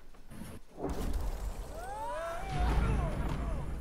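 Small debris bursts up and scatters with a rumble.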